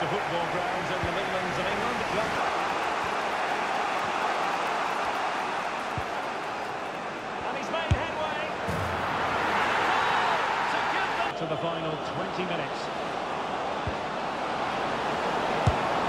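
A large stadium crowd cheers and murmurs.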